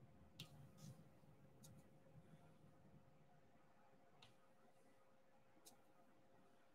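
Small plastic beads click softly as they are pressed into place one by one.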